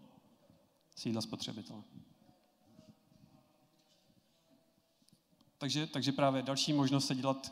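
A man speaks through a microphone over loudspeakers in a large echoing hall.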